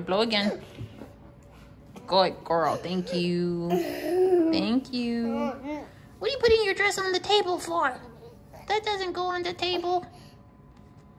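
A young girl cries and whines close by.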